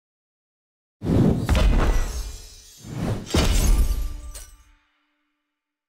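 A loud triumphant fanfare plays.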